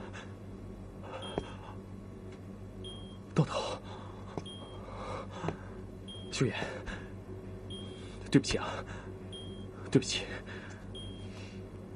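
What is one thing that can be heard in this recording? A man speaks softly and apologetically.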